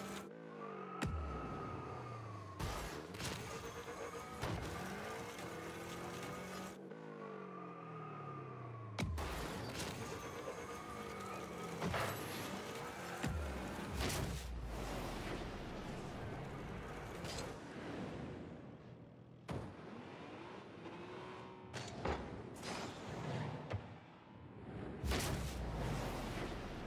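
A car engine roars and boosts with a whooshing rush.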